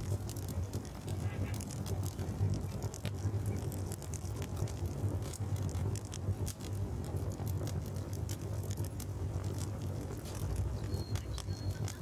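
A torch flame crackles and hisses steadily.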